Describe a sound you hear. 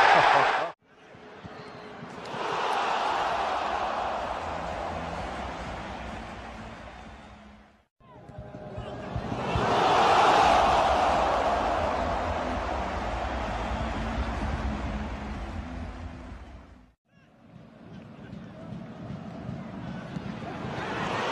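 A large stadium crowd roars and cheers, swelling loudly.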